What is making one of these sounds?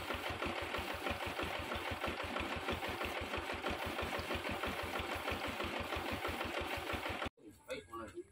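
A paint sprayer hisses and rattles steadily, then cuts off.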